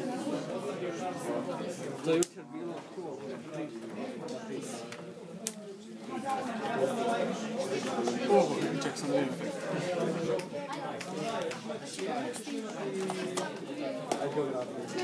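Playing cards tap and slide onto a wooden table.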